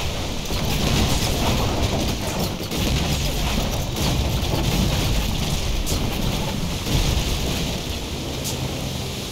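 Flames crackle on burning ships.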